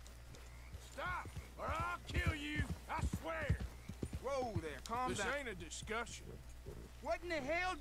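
A man threatens sharply, close by.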